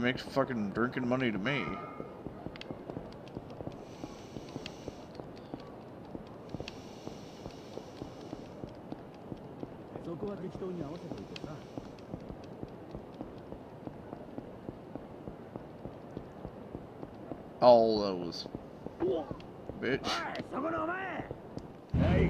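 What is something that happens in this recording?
Quick footsteps patter on pavement as a man runs.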